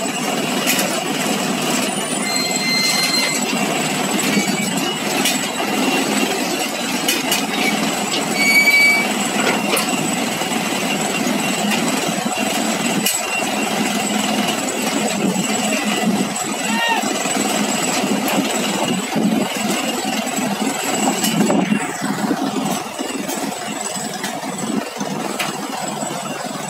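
Heavy machinery engines rumble steadily outdoors.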